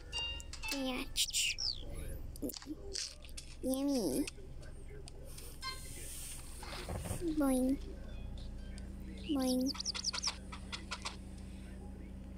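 Playful cartoon sound effects chirp, pop and swoop.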